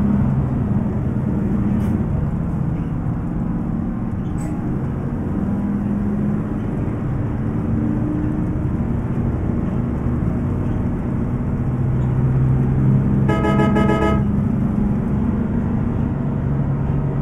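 A bus engine rumbles steadily as it drives along.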